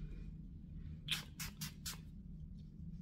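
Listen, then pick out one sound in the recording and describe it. A spray bottle hisses in several quick bursts.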